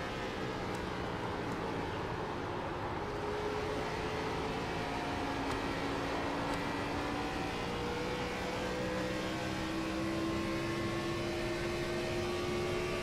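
A race car engine roars steadily at high speed, its pitch slowly rising.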